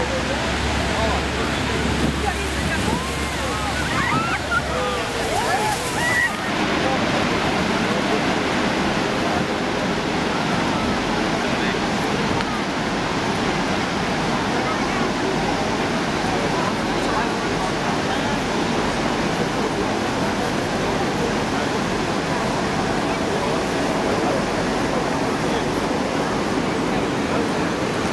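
A waterfall roars loudly and steadily close by.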